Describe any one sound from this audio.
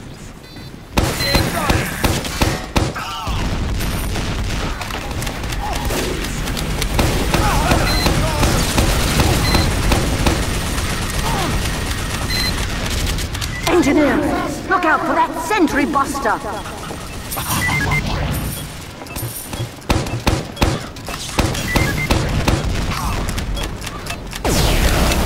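A grenade launcher fires with heavy thumps.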